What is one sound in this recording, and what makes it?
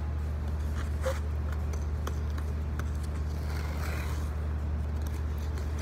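Ice skate blades scrape across ice.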